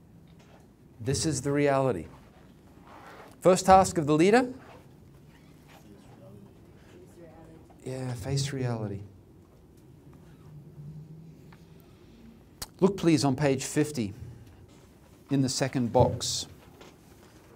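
A middle-aged man speaks calmly through a microphone in short phrases with pauses, heard over loudspeakers in a room.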